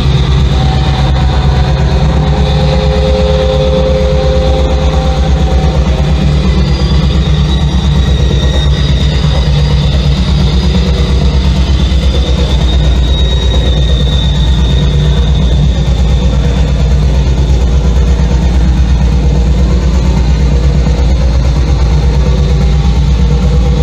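Loud electronic music drones with a deep, rapid pulsing bass through loudspeakers.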